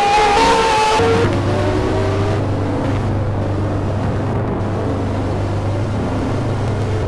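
A racing car engine idles with a low, steady drone.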